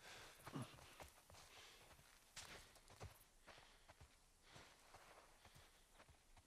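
Footsteps rustle softly through tall grass.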